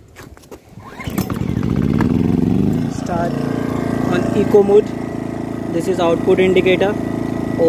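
A small generator engine starts and runs with a steady hum.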